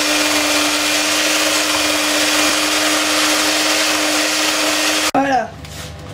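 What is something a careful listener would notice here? An electric hand mixer whirs loudly and steadily.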